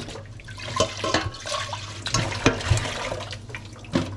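Water splashes in a metal pot.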